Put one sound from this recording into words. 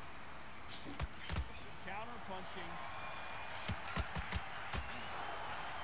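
Punches land with heavy thuds.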